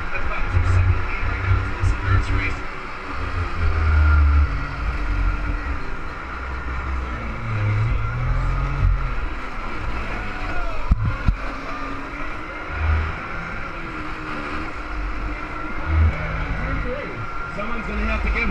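Small kart engines buzz and whine close by, rising and falling as they speed up and slow down.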